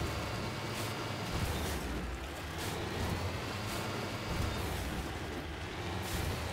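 A heavy vehicle engine rumbles steadily as it drives over rough ground.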